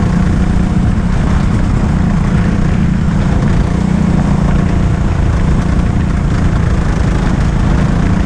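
Kart tyres hiss and rumble on a smooth floor.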